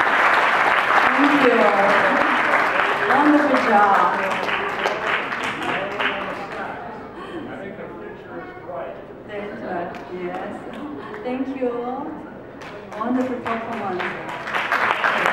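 A man speaks through a microphone on a loudspeaker in a large echoing hall.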